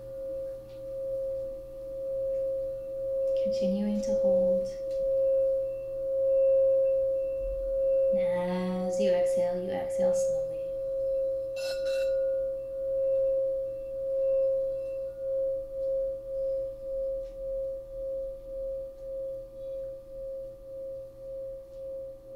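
A steady electronic drone plays from a laptop, pulsing gently towards the end.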